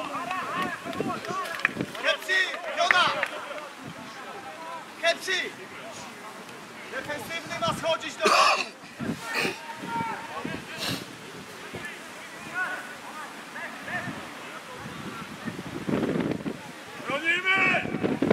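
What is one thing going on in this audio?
Footballers, young men, shout to each other across an open outdoor pitch.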